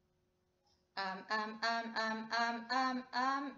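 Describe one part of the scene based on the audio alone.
A young woman sings close to a microphone.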